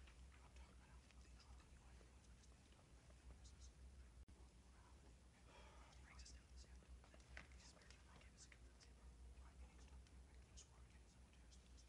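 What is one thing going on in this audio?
Young people murmur quietly to each other at a distance.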